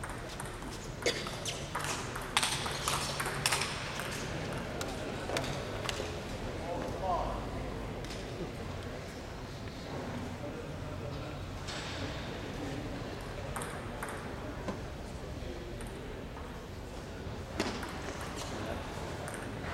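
A ball clicks back and forth on a table tennis table in an echoing hall.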